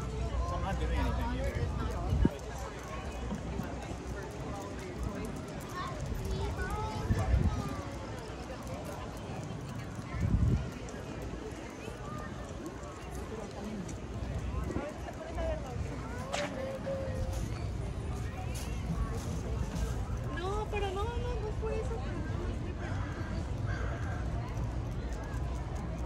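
Men and women chat casually nearby.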